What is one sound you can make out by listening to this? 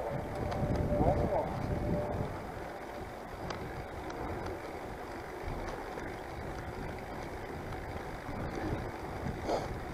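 Tyres hum steadily on a paved road.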